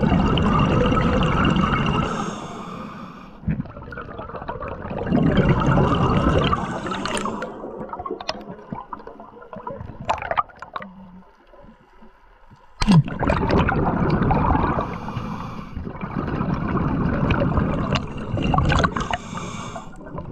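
Exhaled air bubbles rush and gurgle loudly close by, in repeated bursts.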